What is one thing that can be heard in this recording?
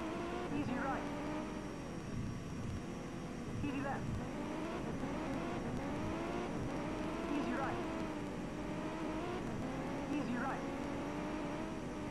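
A racing car engine roars, rising in pitch and dropping sharply with each gear change.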